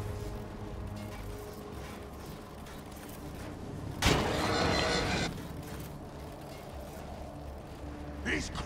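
Guns fire in a battle.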